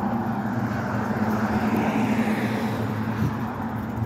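A car drives past on the street.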